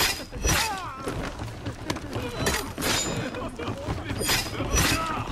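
Blades and blows strike with sharp thuds and swooshes.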